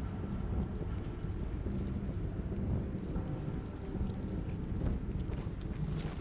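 Footsteps thud slowly on soft ground.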